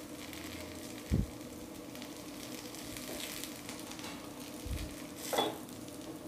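A wooden stick taps and scrapes against a metal pan.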